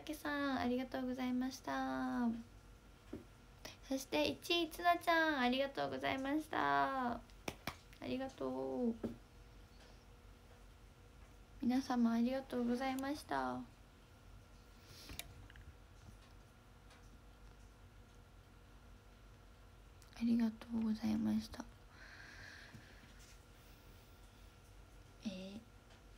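A young woman talks brightly and playfully close to the microphone, with pauses.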